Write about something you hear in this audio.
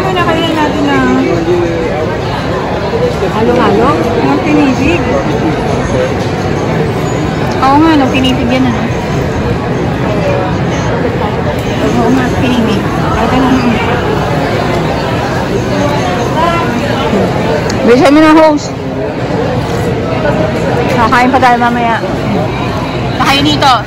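A woman talks casually close by.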